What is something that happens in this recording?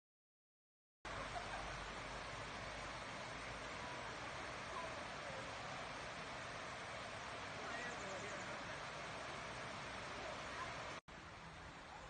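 A river rushes over a weir.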